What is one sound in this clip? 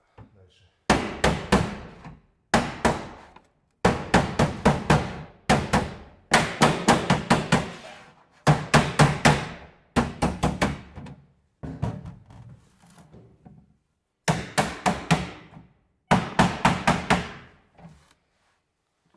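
A mallet taps rapidly on sheet metal in loud, ringing bursts.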